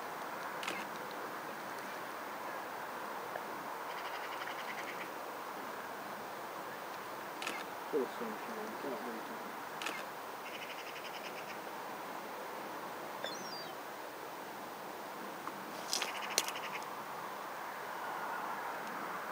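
Reeds rustle softly in a light breeze.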